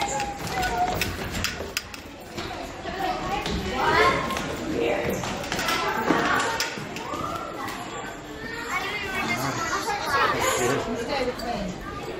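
Children chatter and shout nearby in an echoing stairwell.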